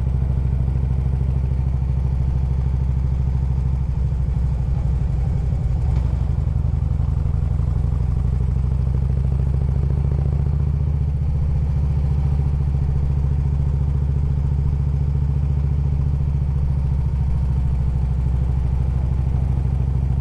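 A motorcycle engine rumbles steadily up close while riding.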